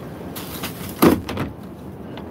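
A plastic bin lid shuts with a thud.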